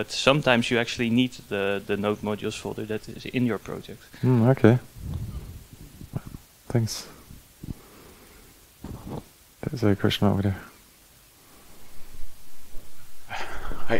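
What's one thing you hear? A man speaks calmly through a headset microphone, with pauses.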